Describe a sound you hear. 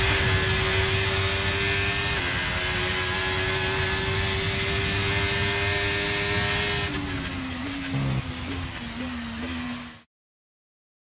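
A racing car engine roars at high revs, then shifts down as the car slows.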